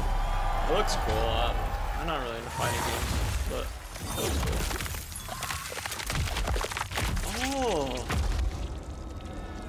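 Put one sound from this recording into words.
A man talks excitedly close to a microphone.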